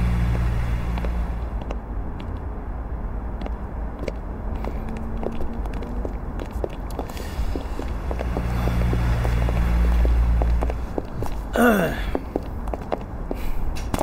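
Footsteps walk steadily on hard ground.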